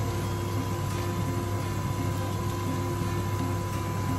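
Water pours into a metal pot.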